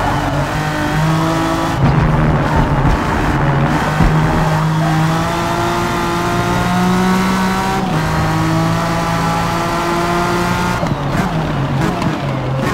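A race car engine roars loudly, its pitch rising through the gears and dropping when braking.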